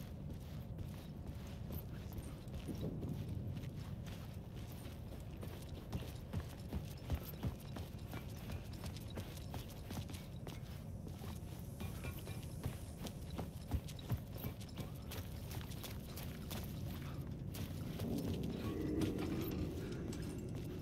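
Footsteps crunch on gravel and debris, walking steadily.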